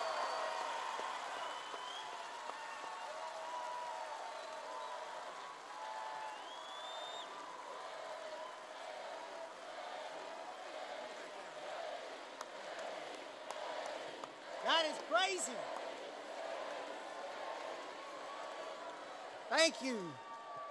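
A large crowd cheers and chants loudly in a big echoing hall.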